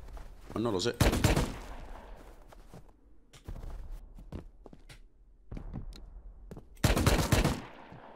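Rapid gunfire bursts out in short volleys.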